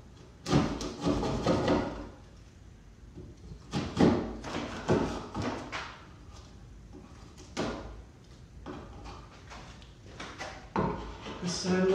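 A mallet strikes a chisel into wood with sharp knocks.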